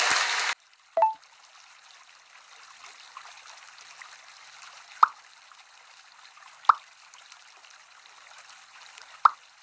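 Short soft pops sound as balls roll into other balls.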